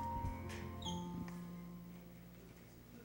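A keyboard chord rings out and fades.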